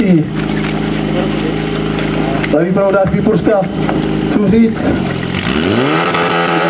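A pump engine runs loudly close by and revs up.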